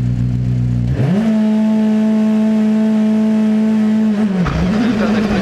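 A rally car engine revs up sharply and holds at a high, steady whine.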